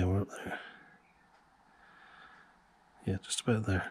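A small metal tool scrapes lightly against metal.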